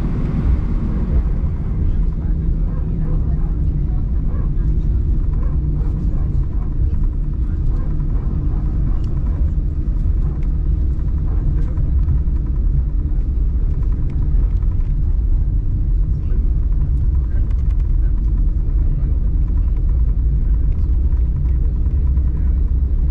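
Jet engines roar steadily, heard from inside an aircraft cabin.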